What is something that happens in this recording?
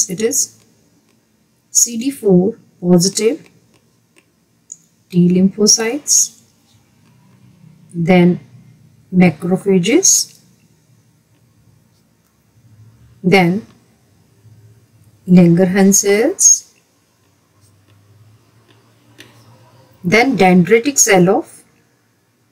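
A woman speaks calmly in short phrases, close to a microphone, with pauses between them.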